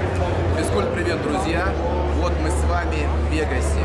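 A man speaks close up, calmly, to the listener.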